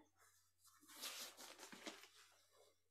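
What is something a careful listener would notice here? Paper rustles as a scroll is unrolled.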